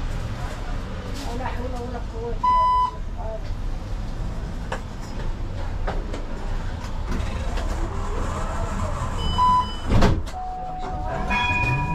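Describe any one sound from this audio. Cars drive past on the street nearby.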